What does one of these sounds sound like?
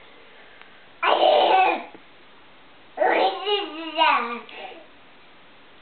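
A baby squeals and babbles loudly.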